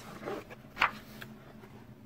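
Paper rustles as a large sheet is handled.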